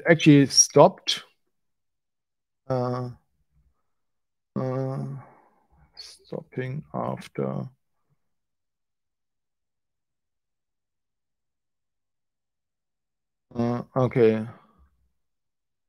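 A man speaks calmly and haltingly into a close microphone.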